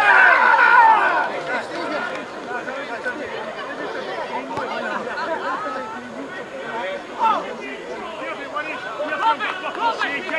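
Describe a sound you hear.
Men cheer and shout excitedly outdoors.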